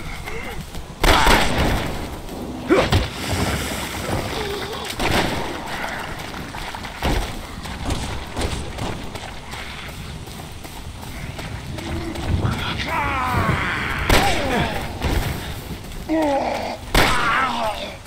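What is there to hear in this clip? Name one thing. A gun fires loud shots.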